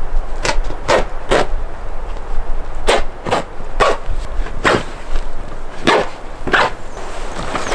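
Stiff tarp fabric rustles and crackles.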